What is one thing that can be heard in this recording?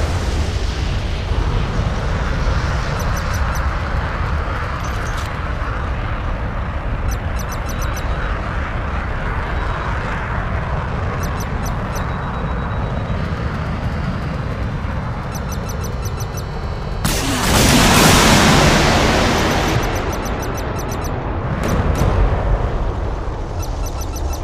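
A jet engine roars steadily throughout.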